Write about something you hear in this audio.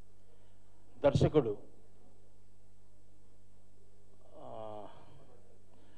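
A middle-aged man speaks briefly into a microphone, heard through a loudspeaker in a room.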